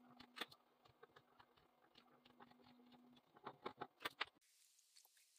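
A small screwdriver scrapes in a hole in wood.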